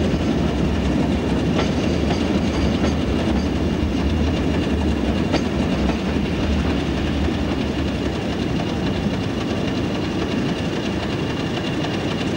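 A train's carriages rumble and clatter slowly past a platform.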